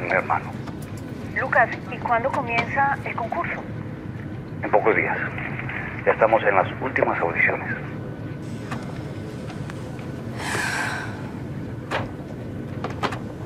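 An airplane cabin hums steadily in the background.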